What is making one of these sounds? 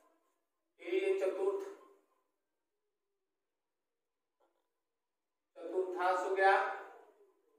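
An elderly man speaks slowly and clearly, as if explaining a lesson.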